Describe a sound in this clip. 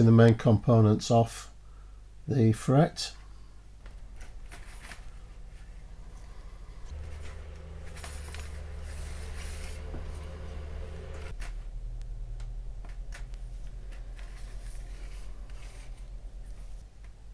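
A hobby knife clicks and scrapes as it cuts small metal parts.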